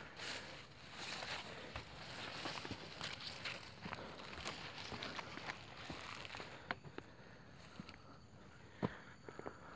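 Footsteps crunch on dry leaves on the ground.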